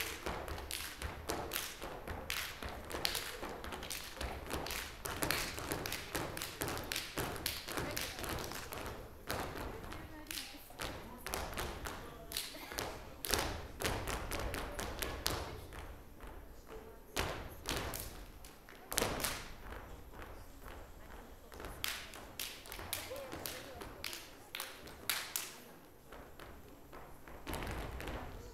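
Dancers' heels stamp and tap on a wooden stage.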